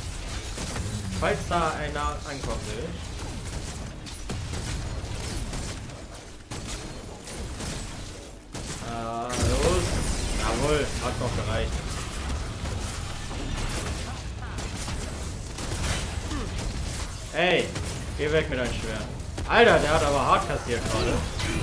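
Guns fire rapidly in a game battle.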